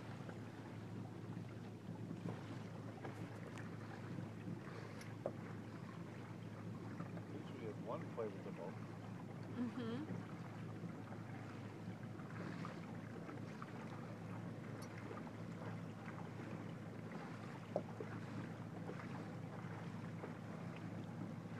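Small waves lap steadily on open water.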